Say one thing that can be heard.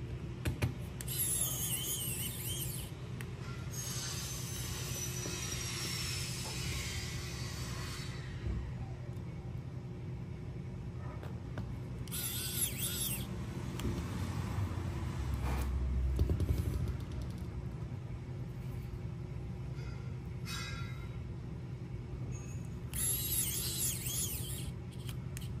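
An electric screwdriver whirs in short bursts.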